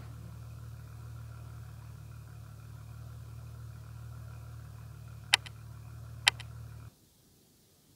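A race car engine idles with a low, steady rumble.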